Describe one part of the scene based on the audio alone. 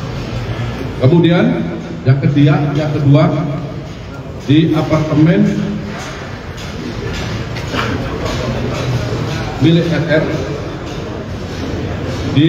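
A middle-aged man reads out a statement firmly into a microphone.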